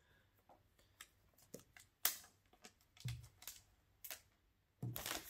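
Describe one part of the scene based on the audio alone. A cardboard box taps and knocks as it is handled.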